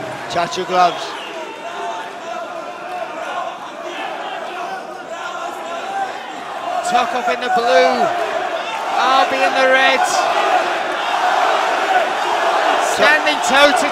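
A large crowd murmurs and cheers in a big echoing hall, growing louder.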